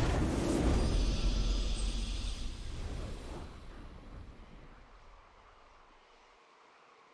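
A game's victory fanfare swells and then fades away.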